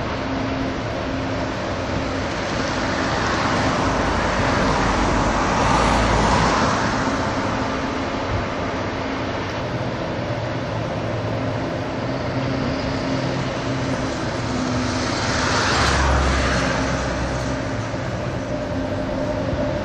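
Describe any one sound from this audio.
A diesel engine hums steadily in the distance.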